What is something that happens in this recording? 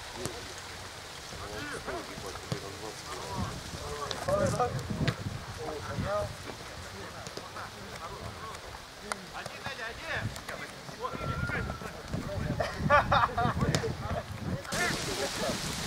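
Young men shout to each other across an open football pitch.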